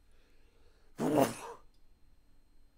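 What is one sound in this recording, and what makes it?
A young man briefly exclaims loudly into a close microphone.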